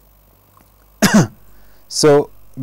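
A man clears his throat close to a microphone.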